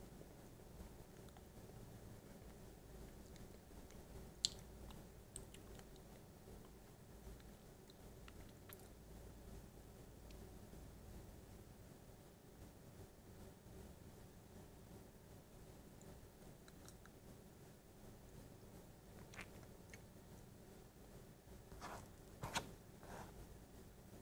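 A man makes wet mouth and tongue clicks close to a microphone.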